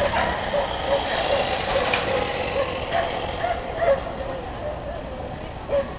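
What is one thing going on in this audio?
A dog runs past, its paws thudding on sand.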